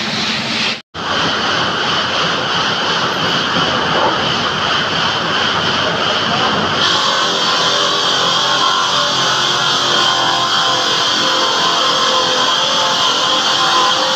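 A stone cutting machine whines loudly and steadily.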